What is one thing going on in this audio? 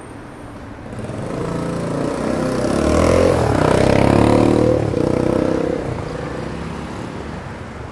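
A motorbike engine roars past close by, rising and fading.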